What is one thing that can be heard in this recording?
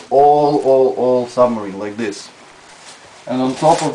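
Plastic film crinkles as it is pulled off a roll.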